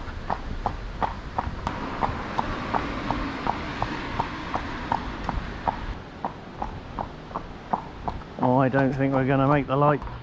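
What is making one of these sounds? A horse's hooves clip-clop steadily on a paved road.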